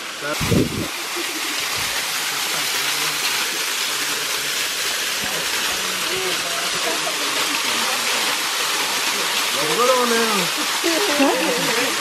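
A waterfall splashes and roars steadily.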